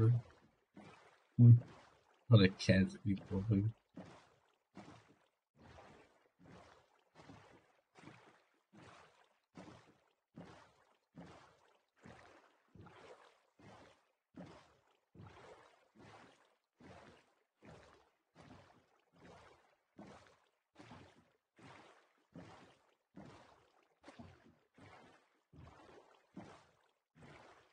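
A small boat's oars splash rhythmically through water.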